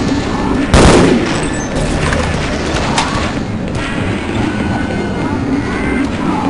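An energy beam crackles and zaps.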